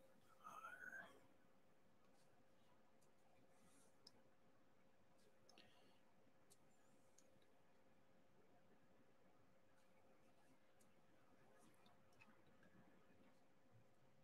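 A small plastic pen taps and clicks softly on a hard surface.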